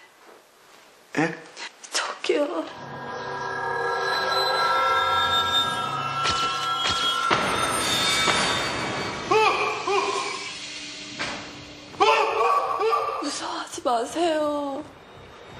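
A young woman speaks anxiously.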